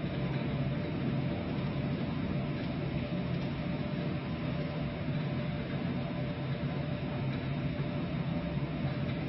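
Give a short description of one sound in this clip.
A gas tanker's engine hums with a steady low drone.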